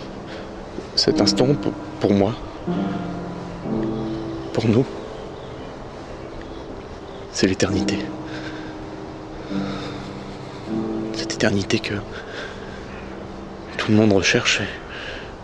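A man speaks quietly and softly, close by.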